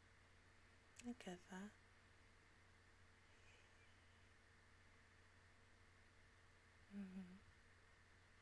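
A young woman makes short, soft sounds with her voice close to a microphone.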